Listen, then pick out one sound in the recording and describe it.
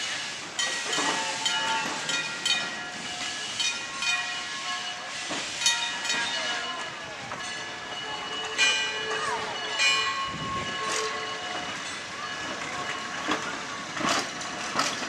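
A heavy rail car rolls slowly along the track with squealing wheels.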